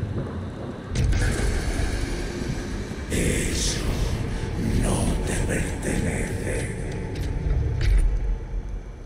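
Steam hisses loudly.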